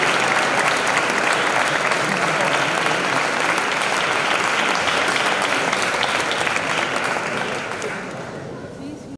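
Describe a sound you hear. An orchestra plays in a large echoing hall.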